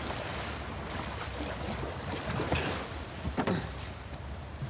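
Water splashes as a figure wades through it.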